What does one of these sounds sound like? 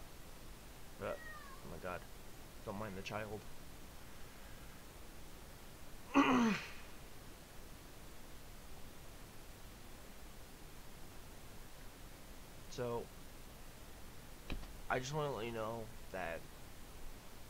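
A young man sings softly in short phrases close to a microphone.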